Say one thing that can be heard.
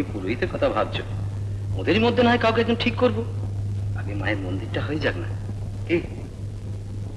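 A woman speaks through an old film soundtrack.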